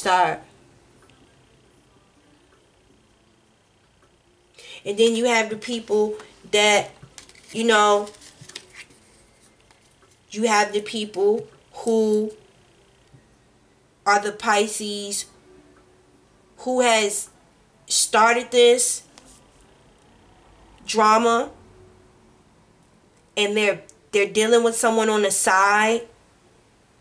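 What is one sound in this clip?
A woman speaks calmly and close by, in bursts with pauses.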